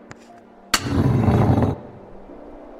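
A beast roars loudly and deeply.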